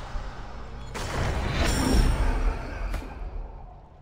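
A loud magical blast bursts.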